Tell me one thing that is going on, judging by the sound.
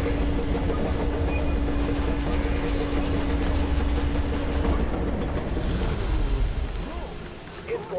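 A locomotive engine rumbles and hums steadily nearby.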